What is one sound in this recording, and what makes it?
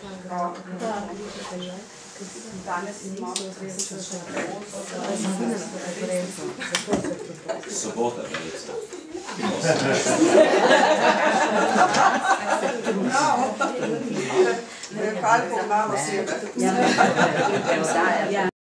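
A woman speaks calmly into a microphone in a room.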